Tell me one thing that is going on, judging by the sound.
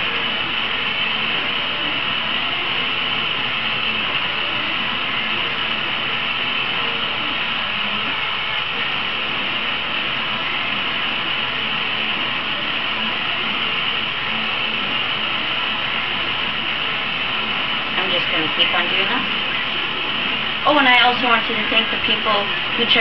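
A gas torch roars steadily close by.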